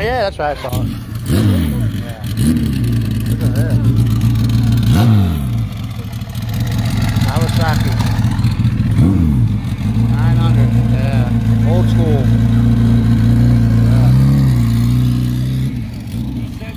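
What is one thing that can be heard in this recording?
A motorcycle engine idles with a deep, throbbing rumble.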